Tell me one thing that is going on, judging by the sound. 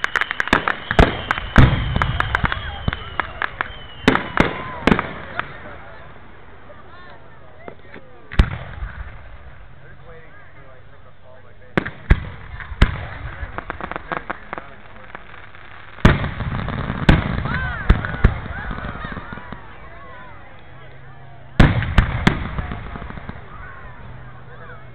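Fireworks bang and crackle loudly overhead.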